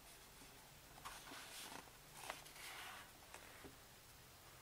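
Pages of a book flip and rustle close by.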